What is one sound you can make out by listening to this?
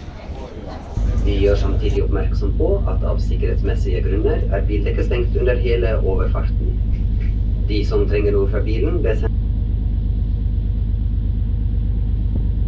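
Wind rumbles loudly against the microphone outdoors.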